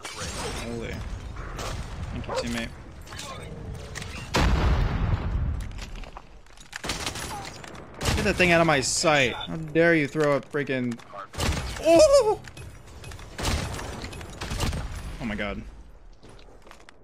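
Gunfire from a game crackles in rapid bursts.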